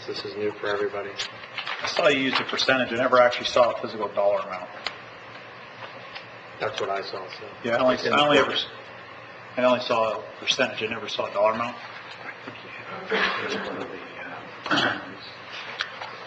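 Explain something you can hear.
A man speaks calmly through a microphone, pausing often, in a large room.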